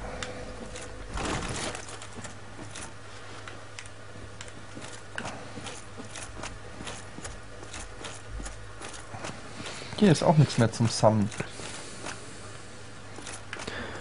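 Armoured footsteps clank on stone.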